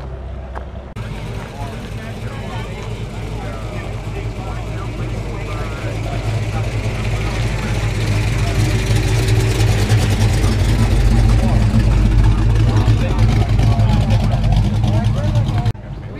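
Men and women chatter in the background outdoors.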